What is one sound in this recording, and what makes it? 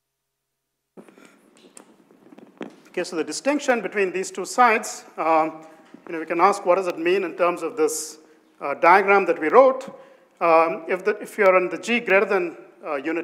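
A man lectures calmly through a microphone in a large room.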